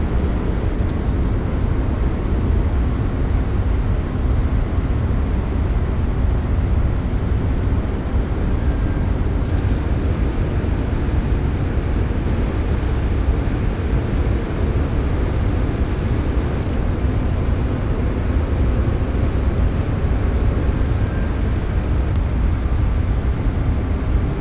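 A deep, steady rumbling hum drones throughout.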